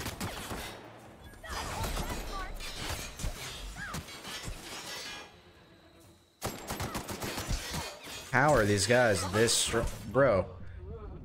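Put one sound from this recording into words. Gunfire and explosions rattle through a game.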